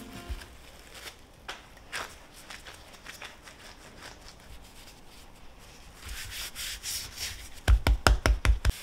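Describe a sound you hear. Hands pat and press dough on a wooden board.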